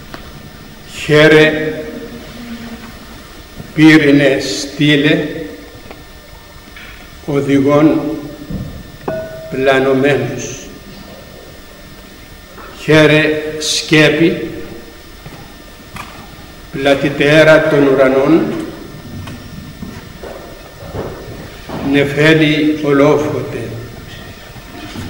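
An elderly man speaks slowly and solemnly through a microphone, in pauses, in an echoing room.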